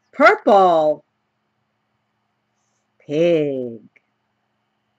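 An elderly woman reads aloud slowly and expressively, close to a microphone.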